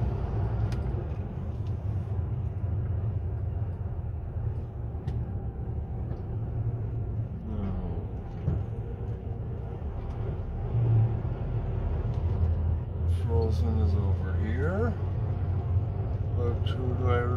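A vehicle's engine rumbles low and steady, heard from inside as it drives slowly.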